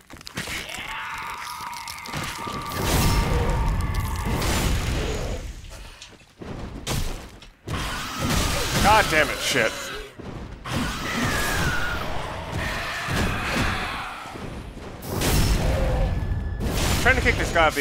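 Metal weapons clang and strike in a fight.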